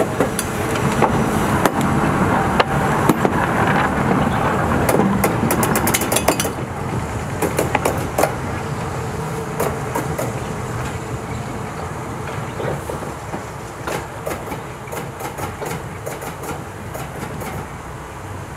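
Train wheels clank on the rail joints.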